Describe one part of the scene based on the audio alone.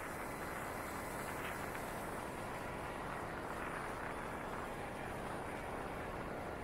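Wind rushes steadily past a moving motorcycle.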